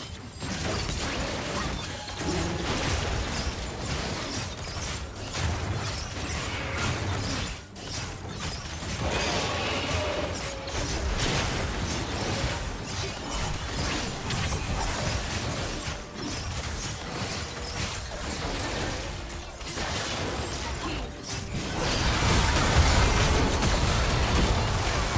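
Fantasy video game combat effects clash, with spell blasts and sword hits.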